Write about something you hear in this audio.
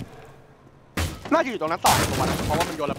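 Wooden boards splinter and crack as they are smashed apart.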